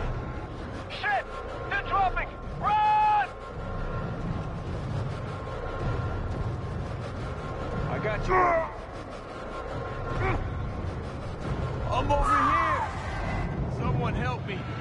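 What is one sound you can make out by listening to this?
Zombies snarl and shriek up close.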